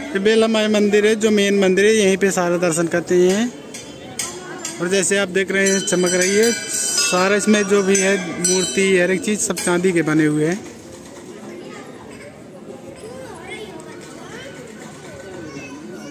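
A crowd of men and women murmurs and chatters nearby.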